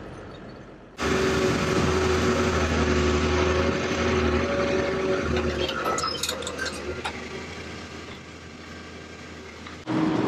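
A heavy excavator engine roars steadily.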